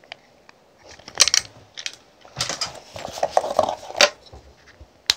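A plastic case crinkles and rustles in someone's hands.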